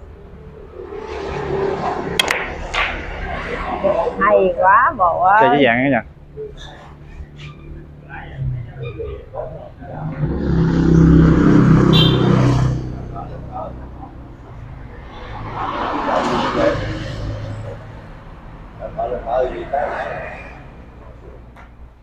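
Men talk nearby with animation.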